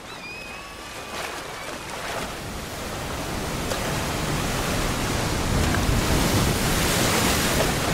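Waves crash and surge close by.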